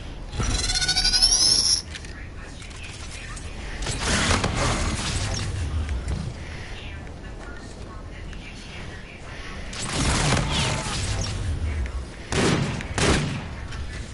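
Gunfire from a video game rattles in bursts.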